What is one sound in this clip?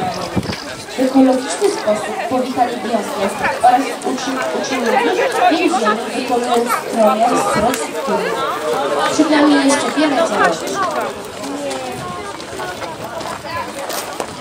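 A crowd of adults and children chatter nearby outdoors.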